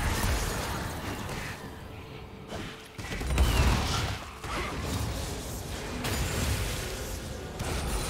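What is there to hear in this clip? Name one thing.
Video game combat sounds of spells and blows crackle and bang rapidly.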